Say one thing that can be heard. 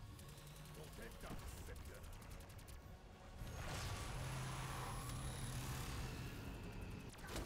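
Electricity crackles and zaps.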